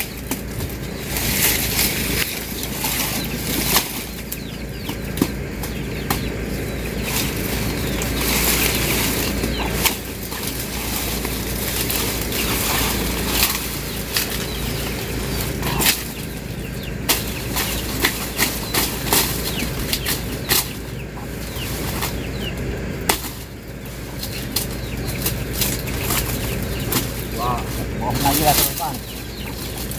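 Dry cane leaves rustle and crackle as the stalks are pulled through them.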